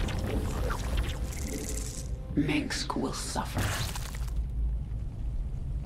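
Alien creatures screech and clash in a battle.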